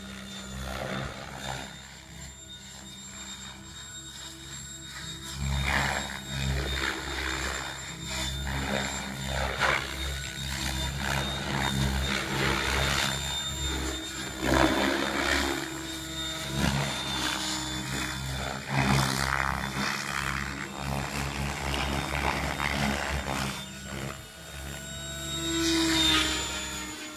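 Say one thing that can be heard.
A model helicopter's rotor whirs and buzzes, rising and falling as it flies overhead.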